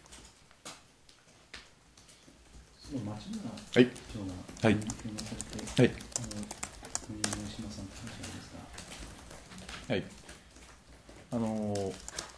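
Laptop keys click as several people type.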